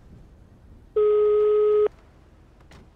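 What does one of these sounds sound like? A phone ringback tone beeps once, steady and clear.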